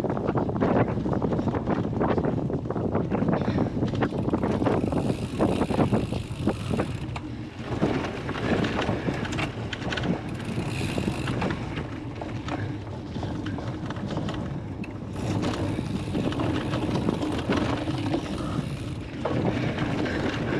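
A bicycle chain and frame rattle.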